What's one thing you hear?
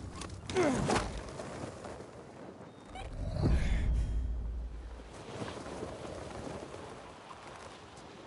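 Wind rushes loudly past during a fast glide through the air.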